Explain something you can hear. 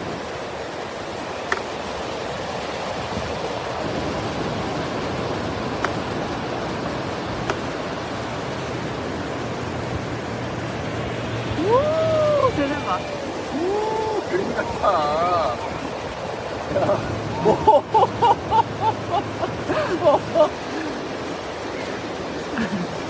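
Waves crash and roll steadily onto the shore.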